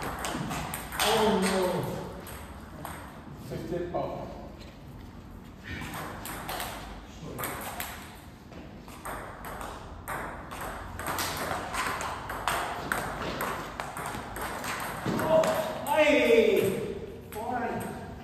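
Table tennis balls click back and forth on tables and paddles in an echoing hall.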